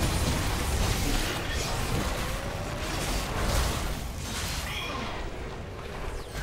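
Spell blasts and hits crackle and whoosh in a fast fight.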